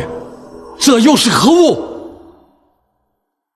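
An elderly man speaks sharply and closely.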